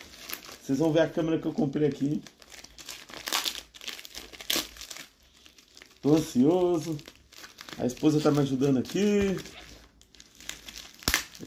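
A plastic mailer bag crinkles and rustles in someone's hands.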